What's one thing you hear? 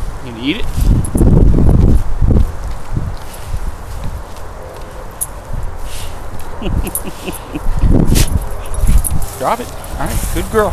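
A dog gnaws and scrapes its teeth on a rubber ball, making squeaks and dull thuds.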